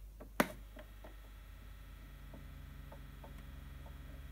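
A record crackles and hisses as the needle plays the run-in groove.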